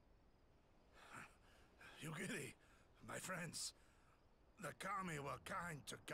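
An elderly man speaks in a low, weary voice close by.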